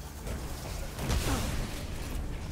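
Flames burst out with a low, rushing roar.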